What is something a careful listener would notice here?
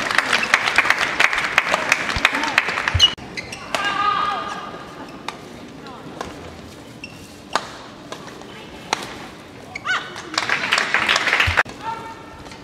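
A crowd cheers and claps loudly in a large hall.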